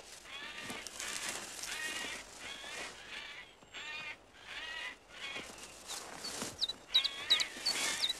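Leaves and grass rustle as an ape moves through them.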